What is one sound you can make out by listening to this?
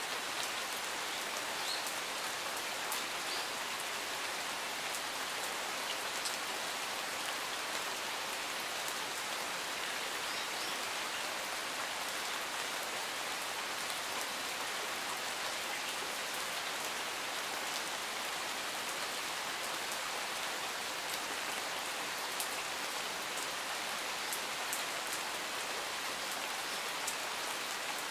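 Steady rain falls outdoors, hissing on leaves and gravel.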